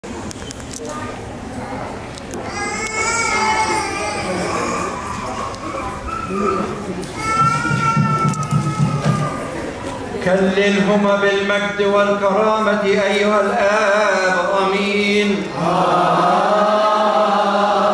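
An elderly man chants prayers into a microphone in a large echoing hall.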